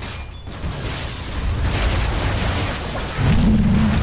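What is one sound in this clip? A crackling electric blast zaps loudly.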